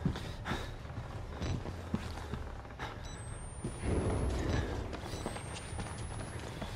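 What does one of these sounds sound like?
Footsteps thud slowly on a hard floor.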